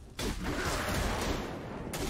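A lightning bolt strikes with a sharp crack.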